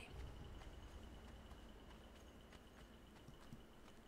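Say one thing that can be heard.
Footsteps patter quickly across sand.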